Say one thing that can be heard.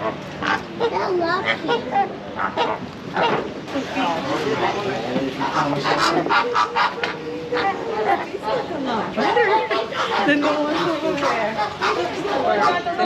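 A woman talks cheerfully and close by.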